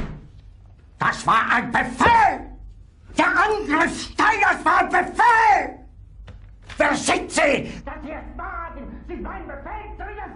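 An older man shouts furiously and close by.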